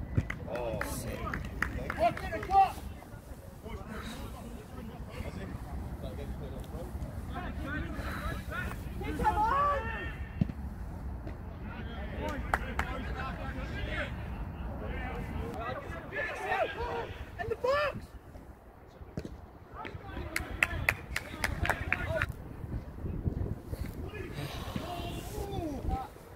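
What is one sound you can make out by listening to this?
Footballers shout to one another across an open pitch outdoors.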